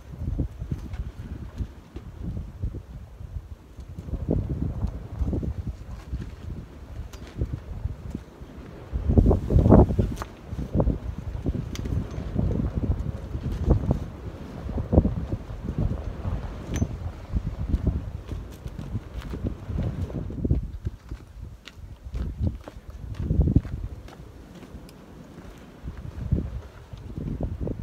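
Wind buffets the microphone outdoors with low, gusty rumbling.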